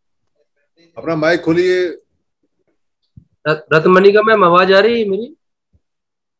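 A man speaks calmly over a headset microphone.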